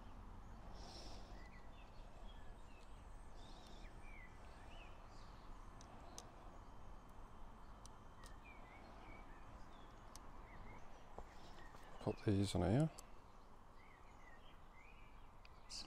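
Small plastic parts click and tap as they are fitted by hand.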